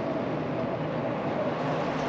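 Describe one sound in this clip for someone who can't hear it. A truck rumbles past nearby.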